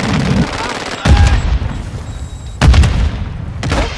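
Loud rifle shots boom in bursts.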